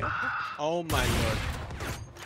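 A sniper rifle fires a loud, sharp shot.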